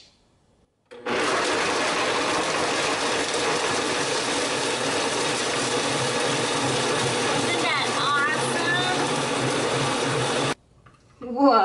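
A blender whirs loudly and steadily.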